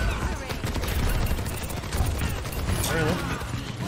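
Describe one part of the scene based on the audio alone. A video game energy weapon fires beams in rapid bursts.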